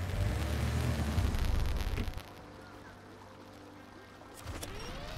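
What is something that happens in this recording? Water splashes around a truck.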